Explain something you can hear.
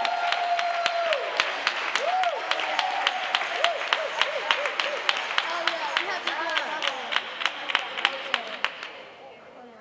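Hands clap in a steady, quick beat.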